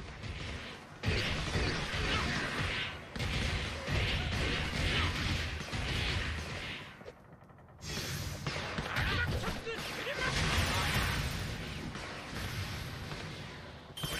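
Blows and crashes of a fight ring out loudly.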